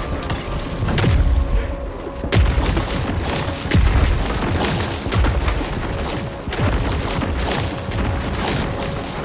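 Explosions burst and splatter wetly.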